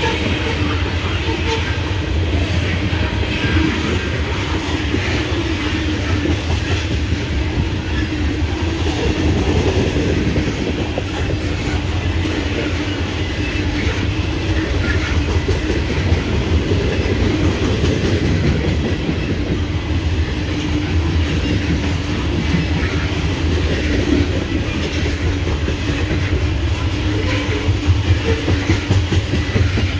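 Steel wheels clack and squeal on the rails.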